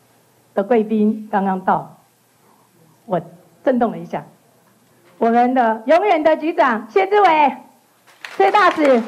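A woman speaks with animation through a microphone and loudspeakers in an echoing hall.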